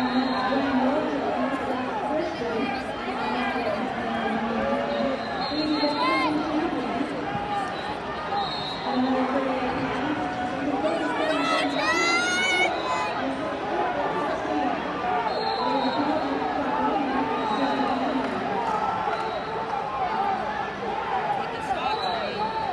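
A large crowd of men and women chatters throughout in a big echoing hall.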